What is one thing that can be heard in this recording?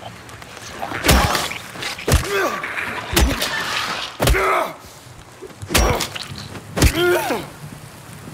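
A metal pipe strikes a body with heavy, repeated blows.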